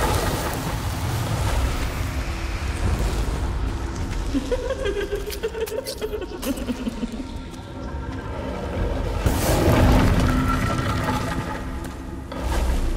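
Fires crackle and roar steadily.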